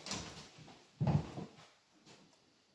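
A piano plays chords close by.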